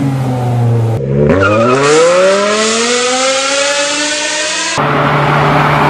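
A car's engine roars as it accelerates away.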